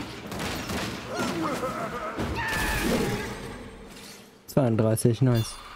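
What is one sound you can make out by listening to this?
A heavy staff swings and strikes with dull thuds.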